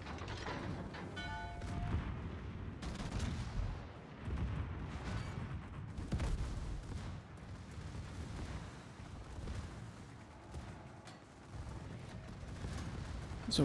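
Shells burst in the water and explode against a warship.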